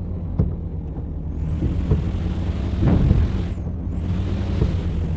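A truck engine rumbles while driving.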